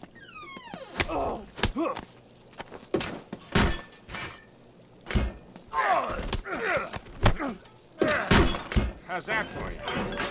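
Punches thud in a brawl.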